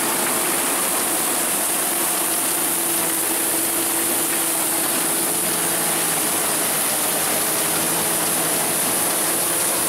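Wheat stalks rustle and crackle as a combine harvester cuts through them.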